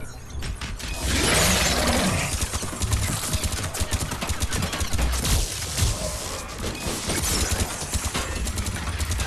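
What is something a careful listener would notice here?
Rapid gunshots rattle and crackle.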